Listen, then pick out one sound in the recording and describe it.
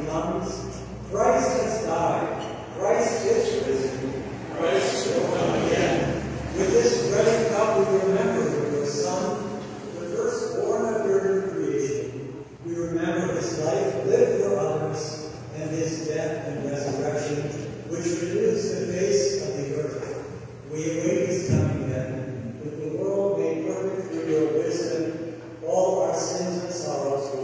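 A man speaks from a distance in a large echoing hall.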